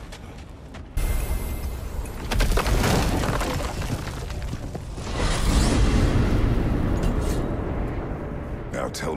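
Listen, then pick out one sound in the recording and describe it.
A deep rumbling roar swells and fades.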